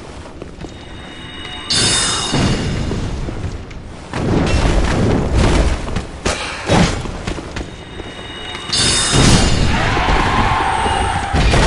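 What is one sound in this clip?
A magic spell whooshes and rings out with a shimmering chime.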